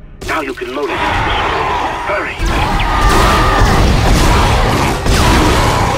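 A monster screeches.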